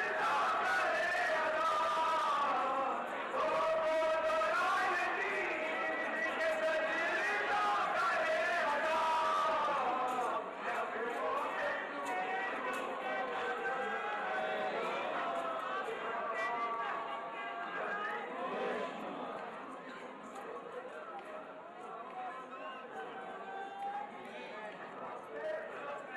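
A man chants loudly and rhythmically through a microphone.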